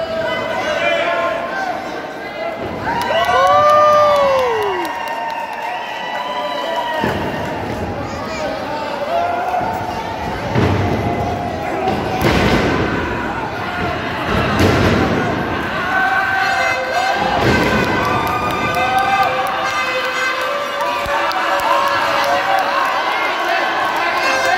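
A crowd of children shouts and cheers in a large echoing hall.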